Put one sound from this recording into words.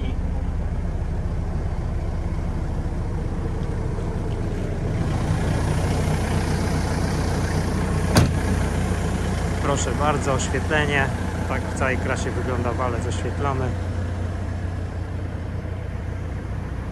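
A heavy machine's diesel engine idles with a steady low rumble.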